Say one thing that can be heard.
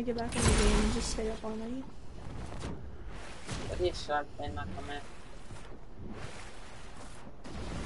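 Water splashes as a game character swims.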